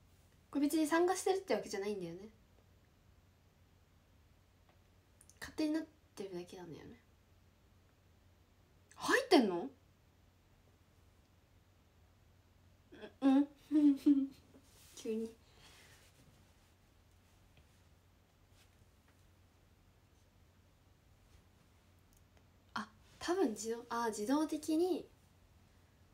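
A young woman speaks close to a microphone in short bursts, with pauses between.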